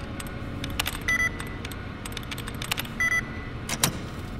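A computer terminal gives short electronic beeps.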